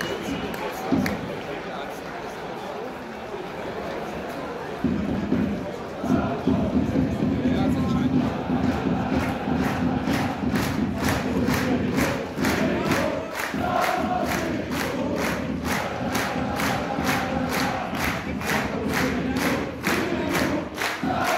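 A large crowd of fans chants loudly in an open-air stadium.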